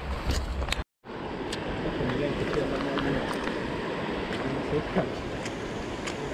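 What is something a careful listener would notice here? A shallow river flows gently over stones.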